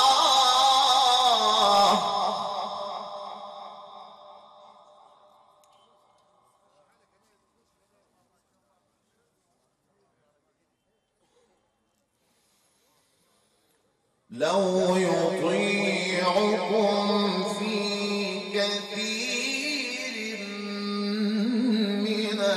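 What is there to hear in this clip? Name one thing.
A man chants in a long, melodic voice through a microphone, with a strong echo.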